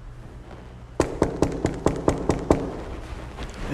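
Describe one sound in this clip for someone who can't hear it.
Knuckles knock rapidly on a door.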